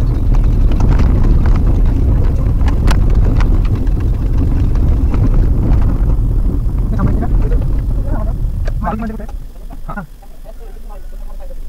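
A car drives along a rough dirt road with a low rumble.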